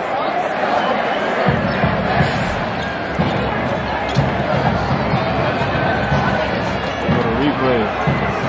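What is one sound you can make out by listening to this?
A large crowd roars and murmurs in a big echoing arena.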